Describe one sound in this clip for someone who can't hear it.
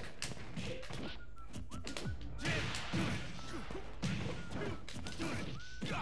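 Punches and kicks land with sharp hits in a video game fight.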